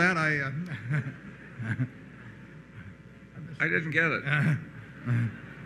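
An elderly man laughs into a microphone.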